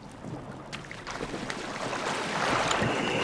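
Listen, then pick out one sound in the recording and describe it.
Water swirls and bubbles.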